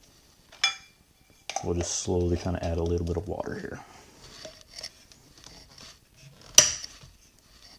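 A metal lid clinks against a tin can.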